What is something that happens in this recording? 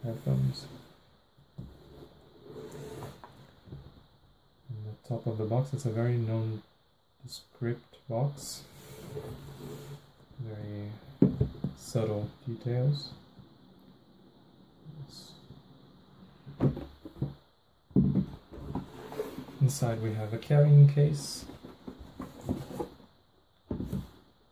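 Hands rub and tap a cardboard box.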